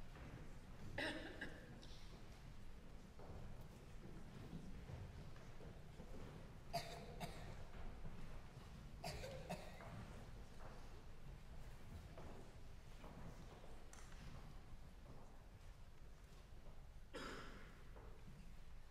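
Audience members cough now and then in a large echoing hall.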